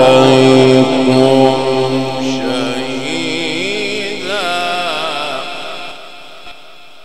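A man chants in a long, wavering melodic voice through a microphone and fades away.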